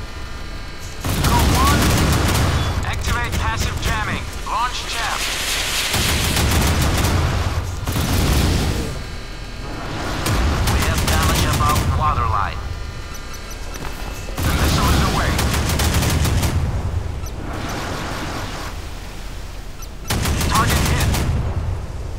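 Ship guns fire in heavy booming bursts.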